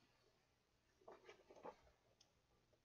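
A page of paper turns with a soft rustle.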